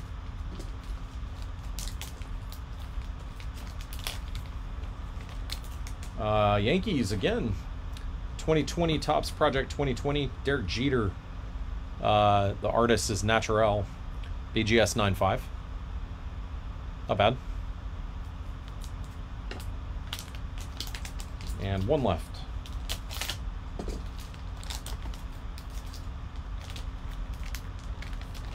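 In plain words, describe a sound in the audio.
A foil wrapper crinkles as it is handled.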